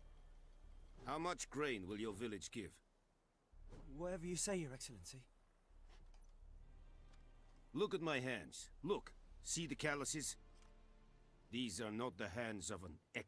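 A second man answers in a deferential voice, close by.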